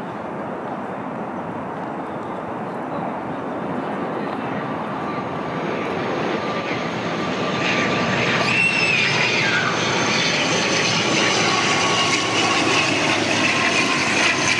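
A jet airplane roars overhead, growing steadily louder.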